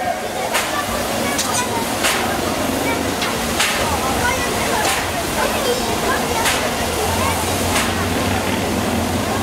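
A crowd chatters in the open air.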